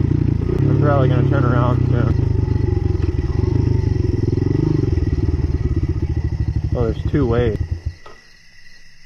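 A dirt bike engine runs with a low rumble.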